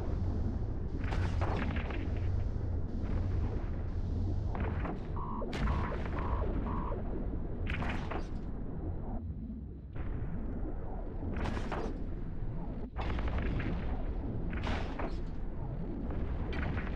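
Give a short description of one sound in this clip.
Laser weapons fire in repeated sharp bursts.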